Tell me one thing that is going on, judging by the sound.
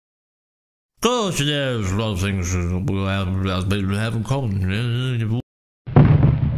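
A man speaks loudly with animation.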